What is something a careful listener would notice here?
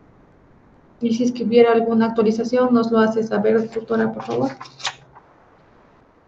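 A young woman speaks calmly, as if reading out, heard through an online call.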